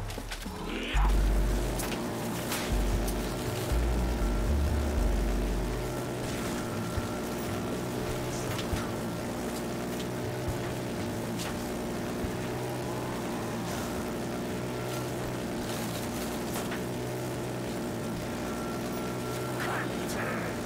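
A flamethrower roars steadily.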